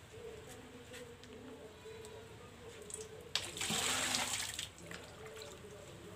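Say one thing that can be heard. Water splashes as it is scooped from a tub.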